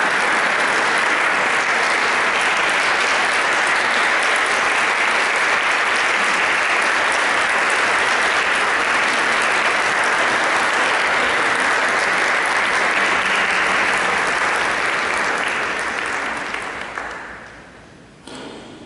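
An audience applauds loudly in a large echoing hall, then the clapping dies away.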